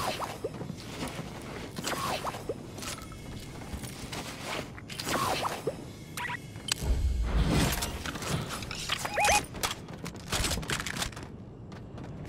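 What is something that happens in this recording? Video game pickup sounds chime and whoosh.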